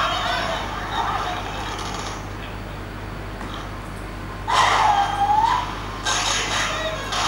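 Electronic game sound effects chirp and whoosh from a tablet's small speaker.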